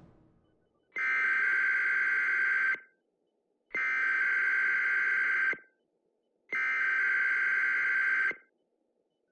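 A harsh electronic alert tone blares in three long bursts with short silences between them.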